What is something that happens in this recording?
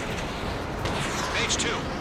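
A missile launches with a whooshing rush.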